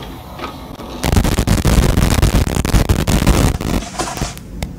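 Loud electronic static hisses and crackles.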